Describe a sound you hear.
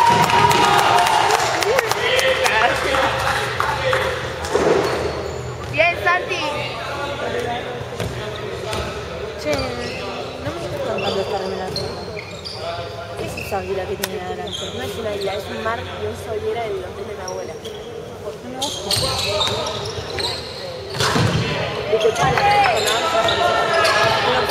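Young players shout to each other in a large echoing hall.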